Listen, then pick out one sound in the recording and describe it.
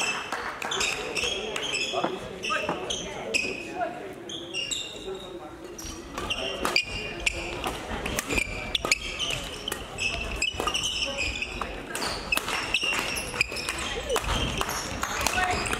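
Sneakers squeak sharply on a sports floor.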